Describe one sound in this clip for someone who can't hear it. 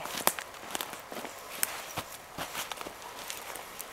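Footsteps crunch in snow close by.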